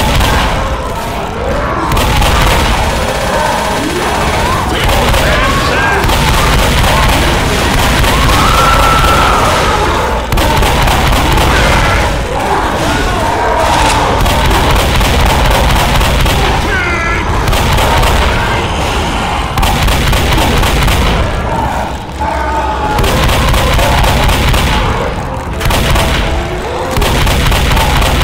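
A shotgun fires again and again with loud blasts.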